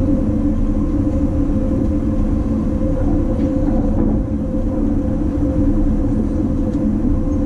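A train rumbles along the tracks at speed with a steady low roar and hum.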